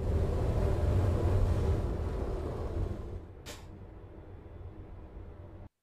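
A truck engine rumbles low and steadily, slowly quietening as the truck slows down.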